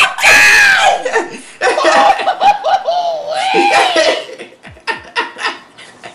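A young man laughs loudly and excitedly close by.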